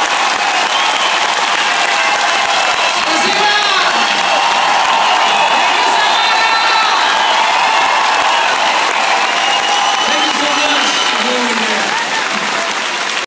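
A large crowd cheers and screams loudly in a big echoing arena.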